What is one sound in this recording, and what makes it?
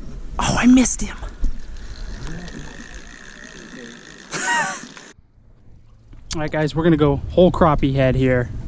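Water laps gently against a small boat.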